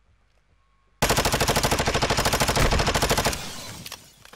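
An automatic rifle fires a long, rapid burst of shots.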